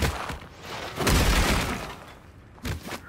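A cartoon puff of smoke bursts with a loud whoosh.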